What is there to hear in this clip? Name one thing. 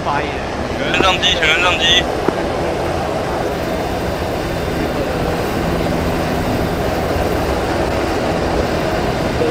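A helicopter's rotor thumps loudly and steadily close by.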